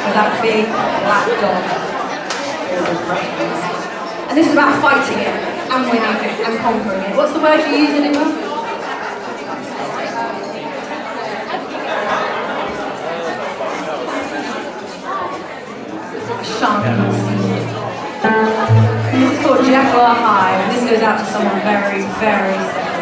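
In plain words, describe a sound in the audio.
A small band plays a lively acoustic tune.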